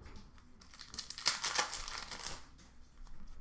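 Plastic-wrapped cards rustle and crinkle in hands.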